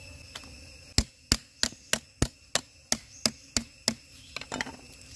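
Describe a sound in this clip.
A cleaver chops rhythmically on a wooden board.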